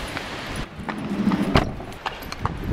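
A van's sliding door slams shut.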